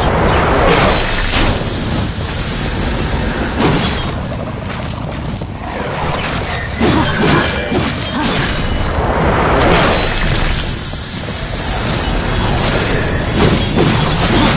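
Blades slash and clang against creatures in a fast fight.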